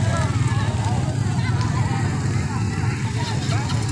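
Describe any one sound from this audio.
A motorcycle engine rumbles close by as it rides off.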